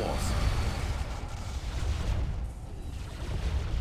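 Energy weapons zap and crackle in a battle.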